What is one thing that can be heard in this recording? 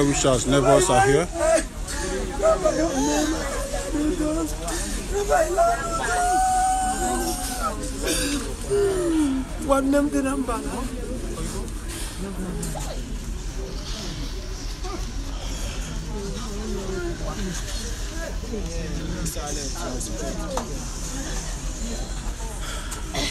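A crowd of men and women talk and wail loudly outdoors.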